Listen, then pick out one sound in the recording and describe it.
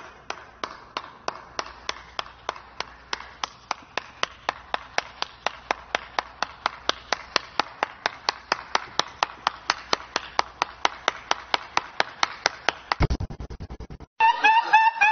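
A man claps his hands slowly and steadily.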